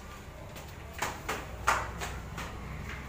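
Footsteps thud on stairs.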